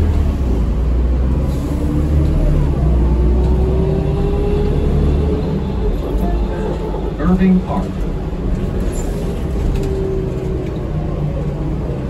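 A bus's engine whines as it speeds up.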